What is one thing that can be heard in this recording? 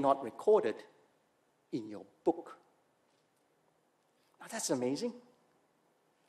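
A middle-aged man speaks with emphasis into a microphone, in short phrases with pauses.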